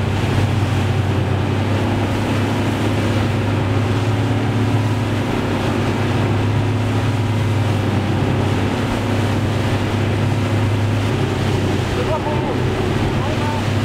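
Water rushes and splashes against a fast-moving sailing boat's hull.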